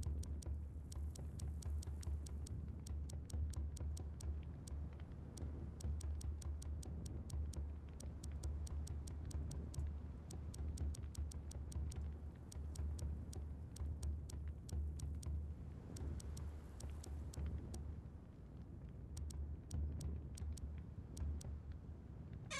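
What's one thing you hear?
Soft interface clicks tick in quick bursts.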